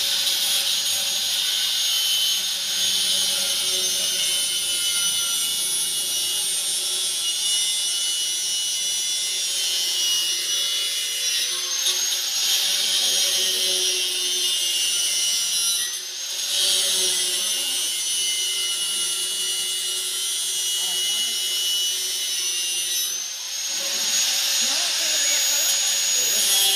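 An electric arc welder crackles and hisses steadily, with a few short pauses.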